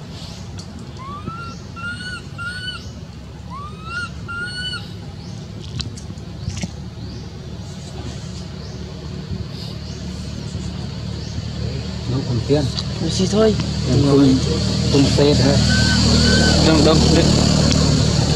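A baby monkey whimpers and squeaks softly close by.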